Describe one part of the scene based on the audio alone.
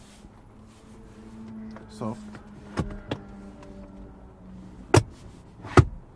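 A plastic armrest lid clicks and knocks.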